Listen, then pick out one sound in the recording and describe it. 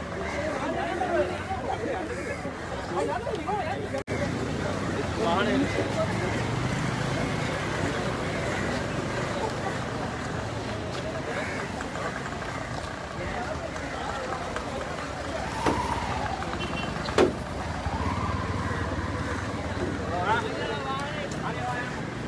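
A crowd of men shouts and talks excitedly close by.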